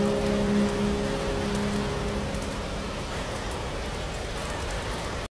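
Steady heavy rain pours down outside.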